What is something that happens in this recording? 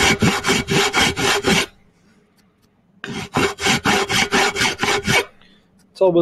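A hacksaw rasps back and forth through metal in quick, even strokes.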